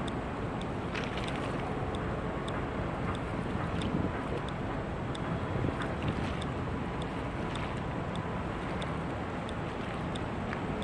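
Tugboat engines rumble far off across open water.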